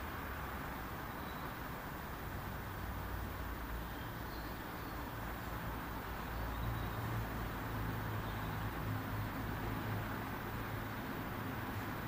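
A man hums a low, steady tone close by.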